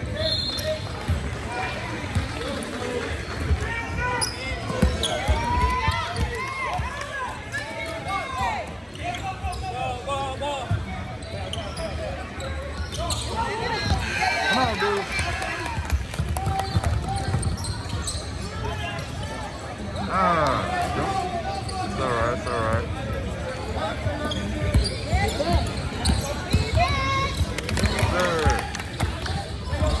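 Young spectators shout and cheer in the echoing hall.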